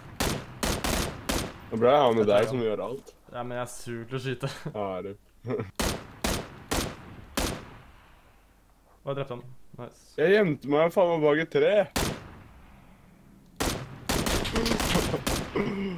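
Gunshots crack sharply, one after another.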